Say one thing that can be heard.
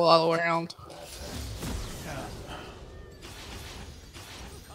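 Video game battle effects clash and crackle.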